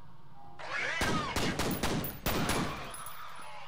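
A pistol fires several sharp shots in quick succession.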